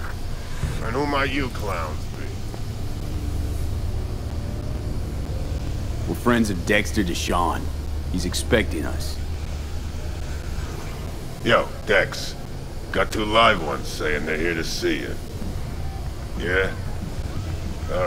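A man speaks gruffly and challengingly, close by.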